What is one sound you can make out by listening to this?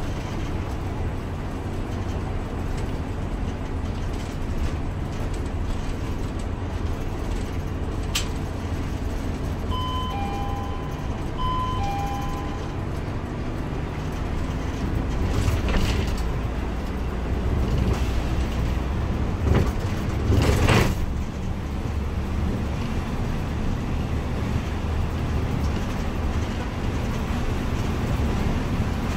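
Tyres roll on the road with a steady rushing noise.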